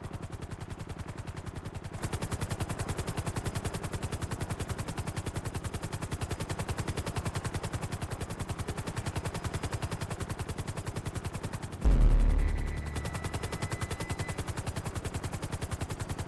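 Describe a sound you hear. A helicopter's rotor chops steadily and close by.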